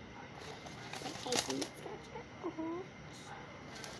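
A young girl speaks briefly and playfully close by.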